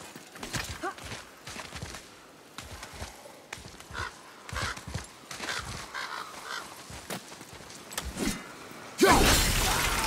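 Hands grip and scrape on rock during a climb.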